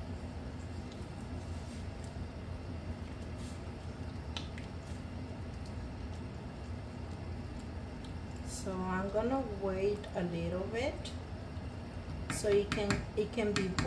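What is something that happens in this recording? A wooden spoon stirs and scrapes through a thick stew in a metal pot.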